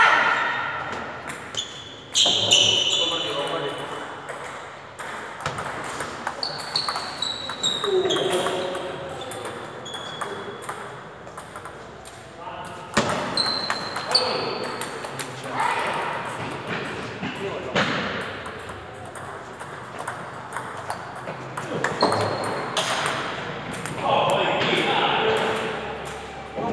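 A table tennis ball clicks quickly back and forth off paddles and a table.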